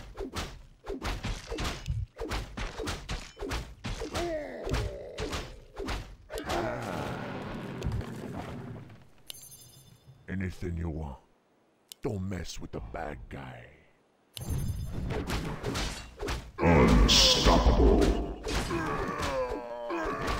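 Weapons clash and spells burst in a fast battle.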